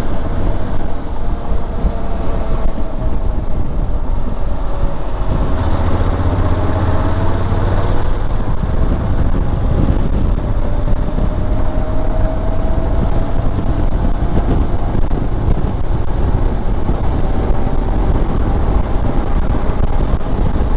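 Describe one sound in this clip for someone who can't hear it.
A motorcycle engine hums steadily while riding, with its pitch gently rising and falling.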